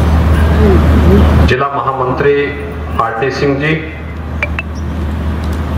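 A middle-aged man speaks steadily into a microphone over loudspeakers.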